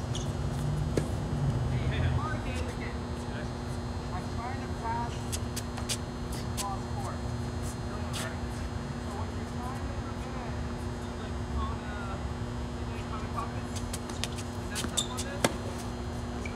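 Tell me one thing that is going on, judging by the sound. A tennis ball is struck sharply by rackets in a rally, outdoors.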